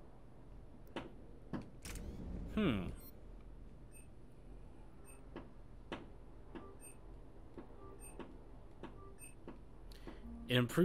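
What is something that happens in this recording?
Short electronic blips sound as menu choices are made.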